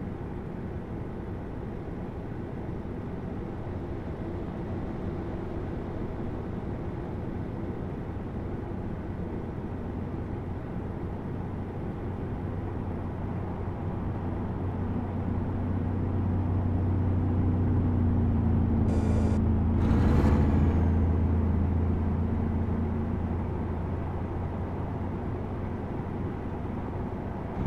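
Tyres rumble on the highway.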